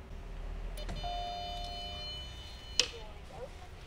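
An electronic access panel beeps with steady electronic tones.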